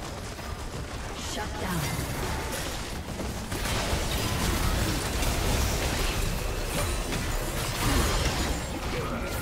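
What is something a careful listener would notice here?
Spell blasts and hits crackle and boom in a fast fight.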